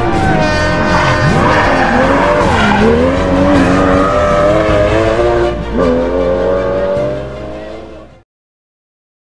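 A rally car engine roars loudly as the car speeds past and fades away.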